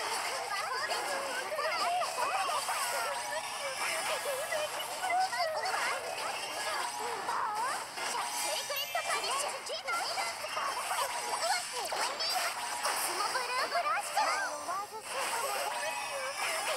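Magic blasts and hits burst and crash in quick succession.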